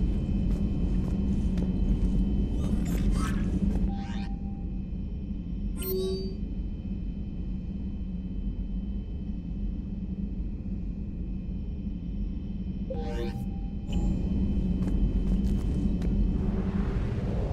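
A low, steady engine hum drones throughout.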